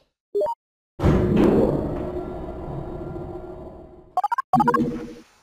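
A bright electronic jingle plays.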